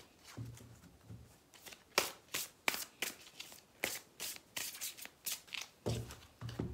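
Playing cards riffle and snap as they are shuffled.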